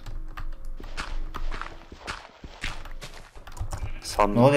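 Gravel crunches in short bursts as it is dug.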